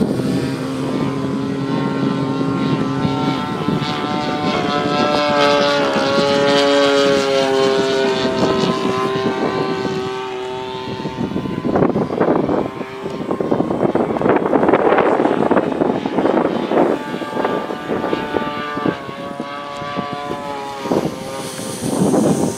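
A model plane's engine buzzes and whines, rising and falling in pitch.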